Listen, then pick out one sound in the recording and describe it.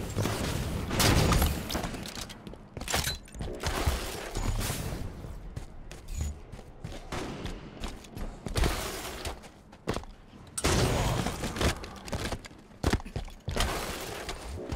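A rifle fires loud, booming shots.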